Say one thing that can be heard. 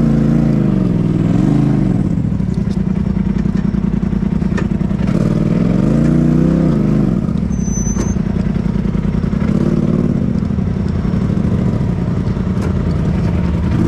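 An off-road buggy engine rumbles and revs up and down.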